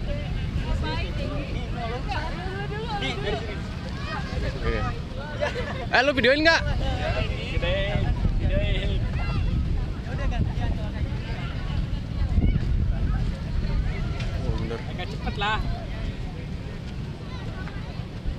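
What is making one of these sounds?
A crowd of young people shout and chatter in the distance.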